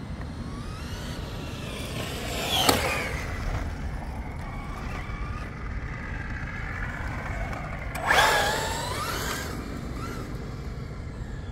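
A remote-control car's electric motor whines as it speeds past and fades away.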